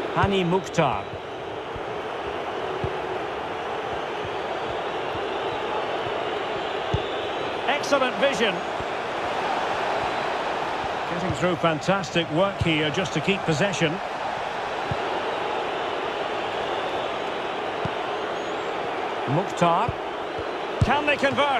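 A large stadium crowd murmurs and roars.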